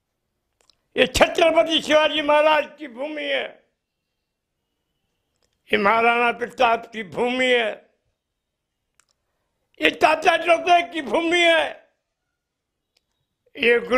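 An elderly man speaks with animation into a nearby microphone, in bursts with pauses.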